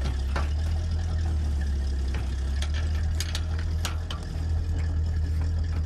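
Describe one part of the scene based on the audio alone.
A metal pipe scrapes and knocks inside a well casing.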